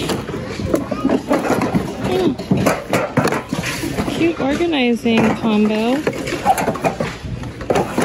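A cardboard box rustles as it is handled.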